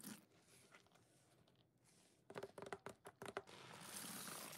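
A plastic bottle clicks and crinkles.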